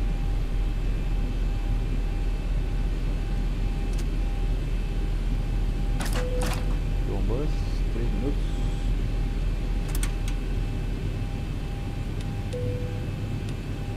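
A jet engine hums low and steady at idle.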